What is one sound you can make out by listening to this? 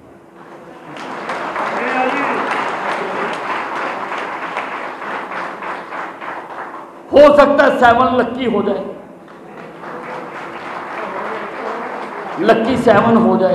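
A crowd applauds and cheers.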